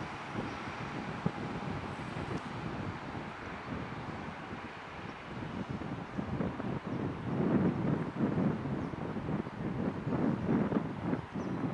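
A propeller plane's engines drone steadily as it comes in to land.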